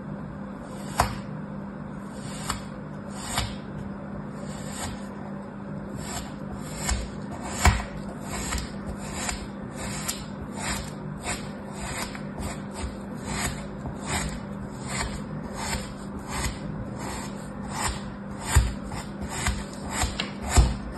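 A small plastic tool scrapes and taps on crumbly sand in short, repeated strokes, close up.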